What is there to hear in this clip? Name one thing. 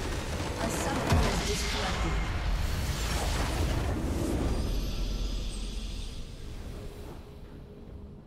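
A large game explosion booms and fades.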